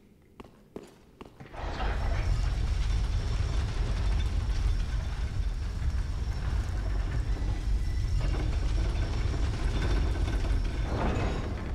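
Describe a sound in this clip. Armoured footsteps clank on wooden boards.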